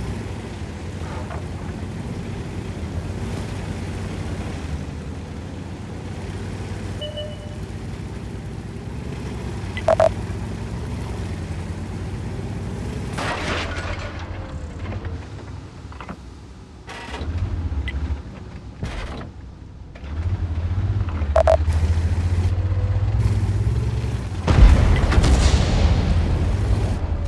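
A tank engine rumbles and its tracks clank as it drives.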